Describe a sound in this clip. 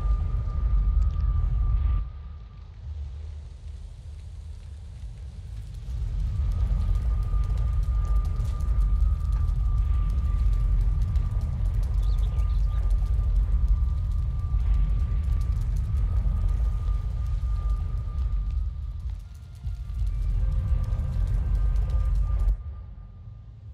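A portal gives off a thin, steady humming tone.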